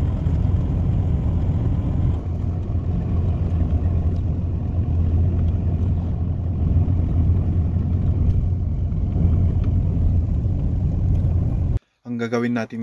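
A car engine hums steadily with road noise from inside a moving car.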